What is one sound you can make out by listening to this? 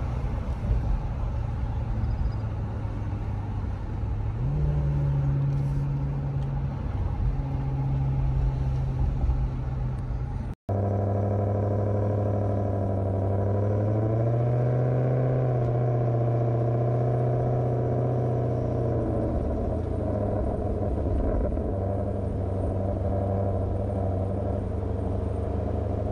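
A car engine drones steadily, its pitch rising and falling as it speeds up and slows down.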